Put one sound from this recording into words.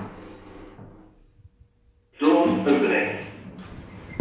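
Elevator doors slide open.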